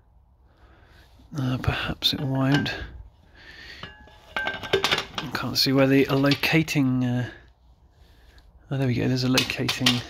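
A metal clutch cover clinks lightly as it is handled.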